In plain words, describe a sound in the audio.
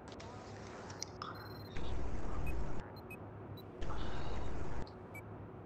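Short electronic menu clicks sound now and then.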